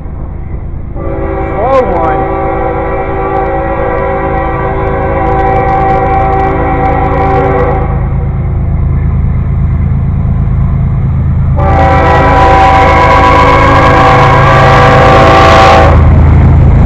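A train horn blares loudly in long blasts.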